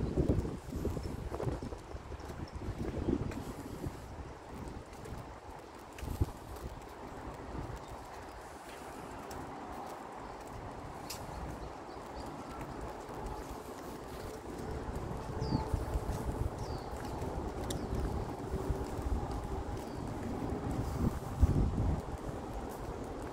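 Wind blows and rumbles outdoors.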